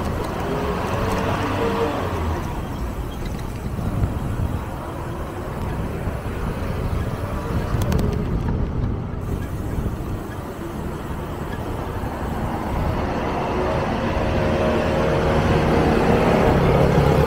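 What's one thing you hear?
Wind rumbles over the microphone.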